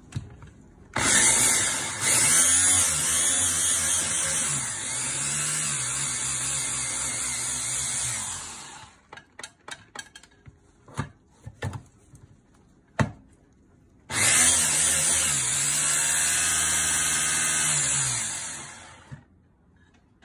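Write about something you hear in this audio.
An electric hand blender whirs loudly as it chops food in a plastic container.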